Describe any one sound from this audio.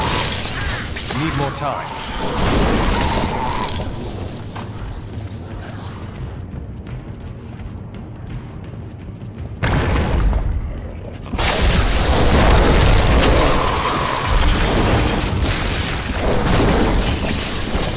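Electric spells crackle and zap in bursts.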